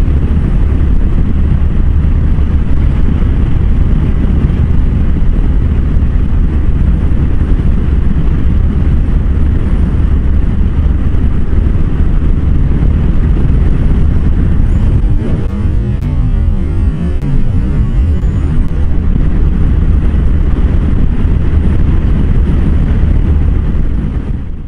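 Wind roars loudly against a motorcycle rider's helmet at highway speed.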